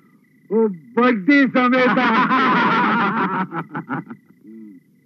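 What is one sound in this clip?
Adult men laugh loudly together.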